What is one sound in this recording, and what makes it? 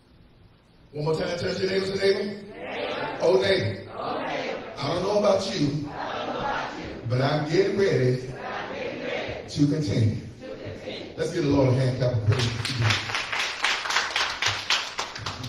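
A man speaks with animation into a microphone, heard through loudspeakers in an echoing room.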